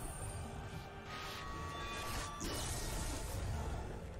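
A sword strikes a beast with a heavy thud.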